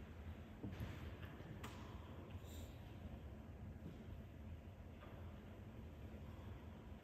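An elderly man speaks softly into a microphone in a large echoing room.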